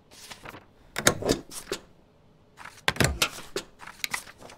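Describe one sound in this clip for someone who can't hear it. A rubber stamp thumps down on paper.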